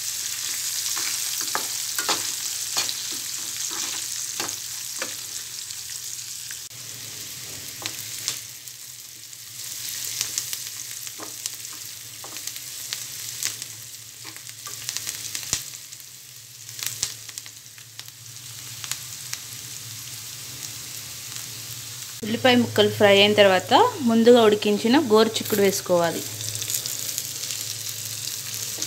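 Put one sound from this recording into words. Onions and spices sizzle in oil in a metal pan.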